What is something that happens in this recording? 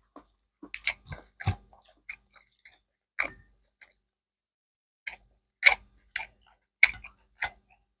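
A man chews food close to a microphone.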